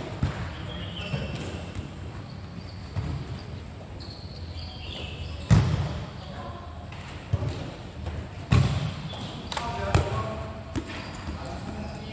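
Shoes squeak sharply on the court.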